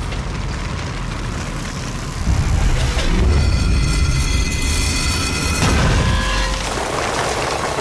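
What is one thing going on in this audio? Fires crackle and roar steadily.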